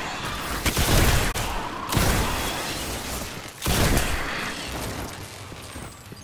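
Electric energy crackles and zaps.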